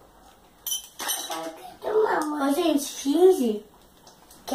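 A young girl talks in a high voice close by.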